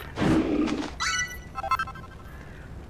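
A short bright jingle chimes as an item is picked up.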